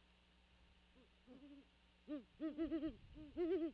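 An owl hoots in short, rising and falling calls, close by.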